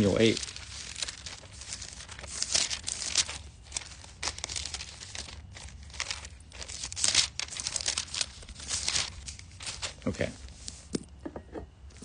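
A pen scratches and rustles on paper close by.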